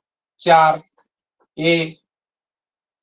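A man speaks loudly and clearly nearby, in two short bursts.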